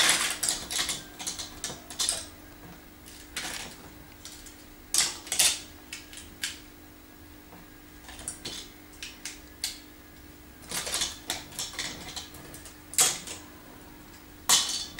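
Plastic toy bricks click and clatter as a small child handles them.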